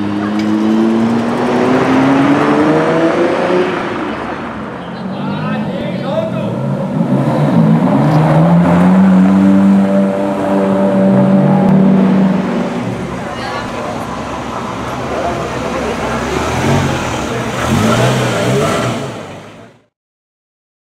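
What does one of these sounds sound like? A sports car engine revs loudly and roars as it drives past.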